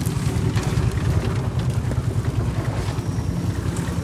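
A spade scrapes through gravel.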